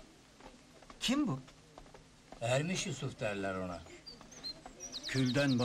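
A man speaks calmly nearby, in short phrases with pauses.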